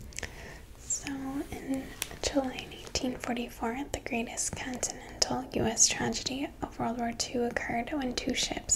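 A young woman speaks calmly and closely into a microphone.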